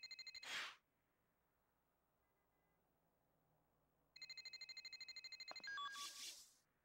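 Electronic menu tones beep quickly in a game.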